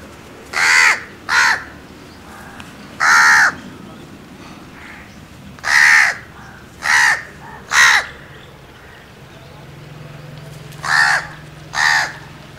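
A crow caws loudly and harshly, close by, in short repeated bursts.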